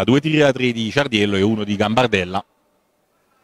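A man talks with animation in a large echoing hall.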